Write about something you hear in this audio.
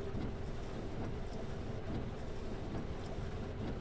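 A windscreen wiper sweeps across the glass.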